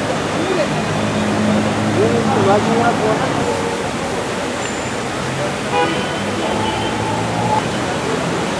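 Traffic hums steadily in the background.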